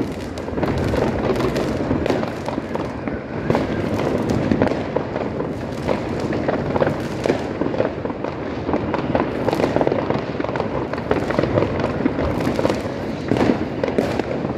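A firework fountain hisses nearby.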